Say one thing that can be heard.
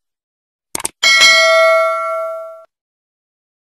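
A small bell chimes brightly and rings out.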